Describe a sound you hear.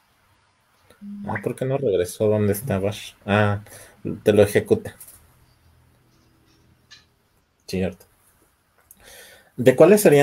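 A man talks calmly over an online call.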